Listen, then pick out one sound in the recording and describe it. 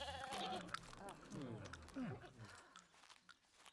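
Sheep bleat close by.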